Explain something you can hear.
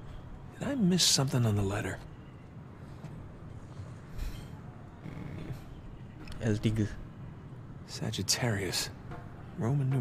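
A man murmurs thoughtfully to himself.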